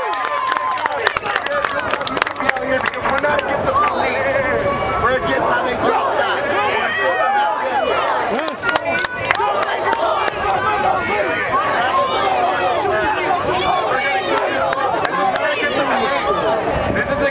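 A crowd of men and women chants loudly together outdoors.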